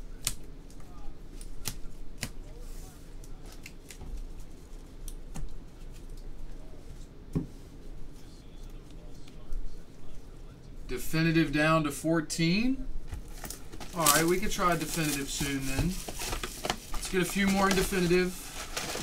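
Card boxes and packs click and rustle as they are handled.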